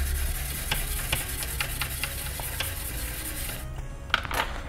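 A small brush scrubs briskly with a dry, scratchy hiss.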